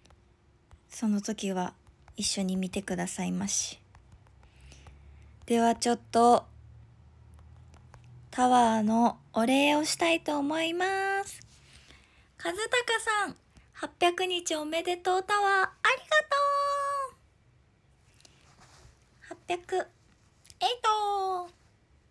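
A young woman speaks close to the microphone in a bright, animated voice.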